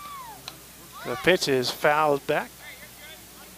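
A crowd of young women cheers and shouts loudly outdoors.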